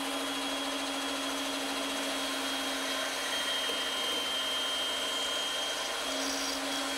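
A band saw hums steadily as it cuts through wood.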